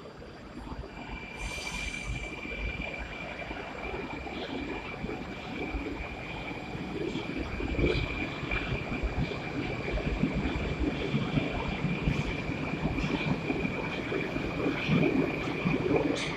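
An electric train pulls away with a steady high whine.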